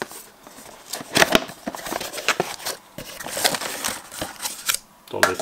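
Cardboard scrapes and rustles as a box lid slides open.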